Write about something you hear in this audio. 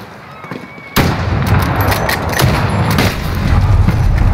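Gunshots crack loudly with a booming echo.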